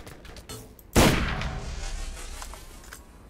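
A rifle fires a single loud shot that booms and echoes away.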